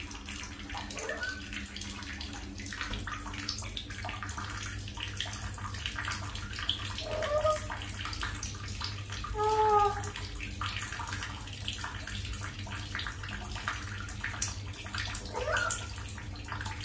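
A small parrot gives short, high chirps.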